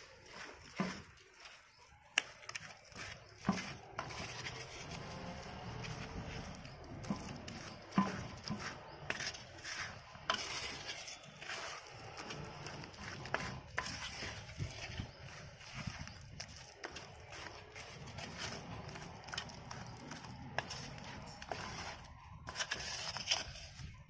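A hand squelches and slaps wet paste in a bowl.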